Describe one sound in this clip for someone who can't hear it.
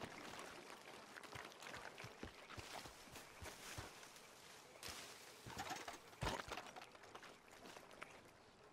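Footsteps crunch through grass and brush.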